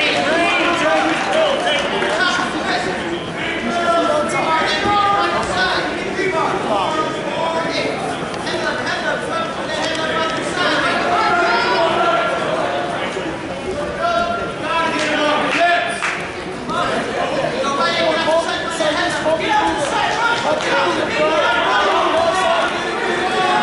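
A crowd of spectators shouts and cheers throughout in a large echoing hall.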